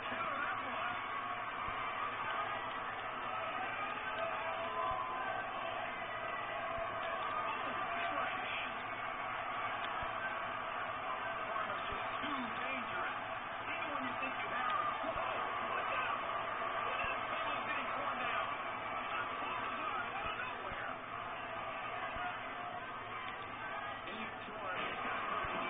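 A crowd cheers and roars steadily through a television speaker.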